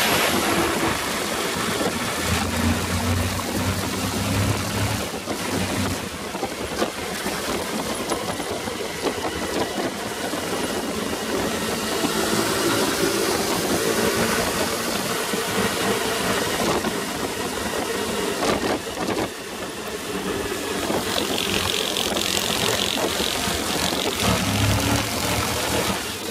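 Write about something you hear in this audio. Other motorcycles buzz nearby on the road.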